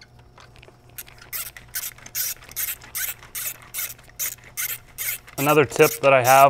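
A ratchet wrench clicks rapidly as it is turned.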